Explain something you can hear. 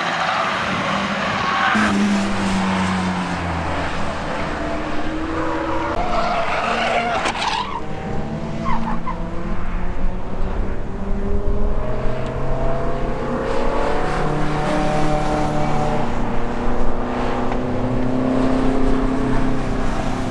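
Racing car engines drone steadily nearby and at a distance.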